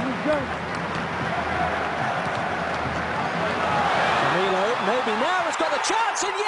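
A large stadium crowd roars steadily and swells louder.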